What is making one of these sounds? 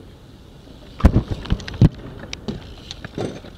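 Metal bike pegs grind and clank on a rail.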